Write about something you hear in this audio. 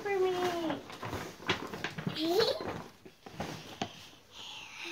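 A paper gift bag rustles and crinkles.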